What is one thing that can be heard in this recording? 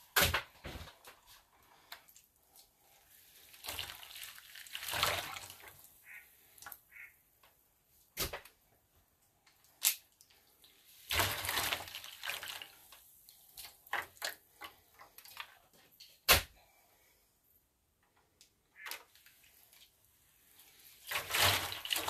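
A foil tray crinkles and rustles now and then.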